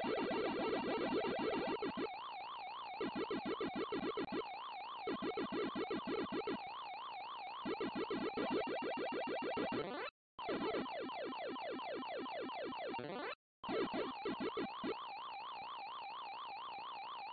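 An 8-bit console tone warbles up and down like a siren.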